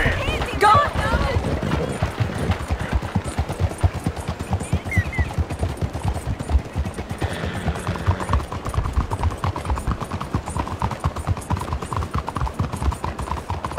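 A horse gallops on a dirt street.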